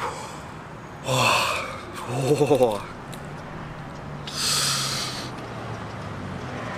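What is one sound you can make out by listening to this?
A man laughs softly.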